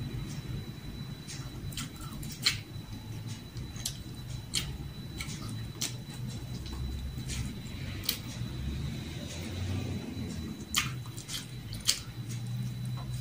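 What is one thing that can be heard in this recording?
Fingers tap and scrape on a plate.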